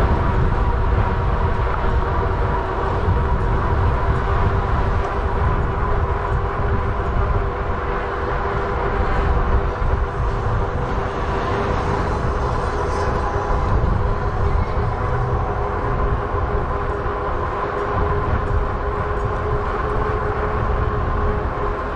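A vehicle engine hums steadily while driving along a street.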